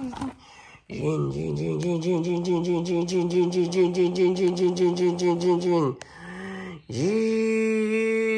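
A toy motorcycle plays a fast, beeping electronic tune.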